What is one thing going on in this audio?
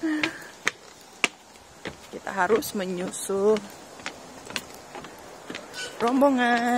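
Footsteps thud on a wooden boardwalk outdoors.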